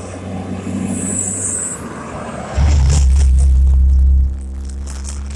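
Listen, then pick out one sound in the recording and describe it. A heavy truck rumbles past close by with a deep engine roar.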